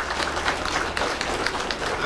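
People clap their hands.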